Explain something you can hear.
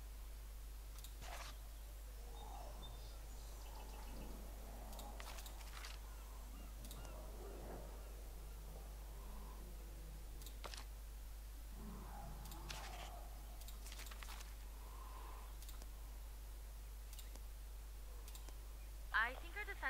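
Soft interface clicks sound now and then as menu options change.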